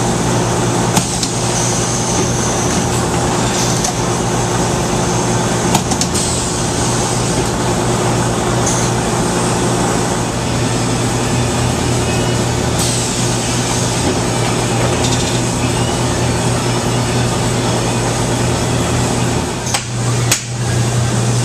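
A printing press clunks now and then.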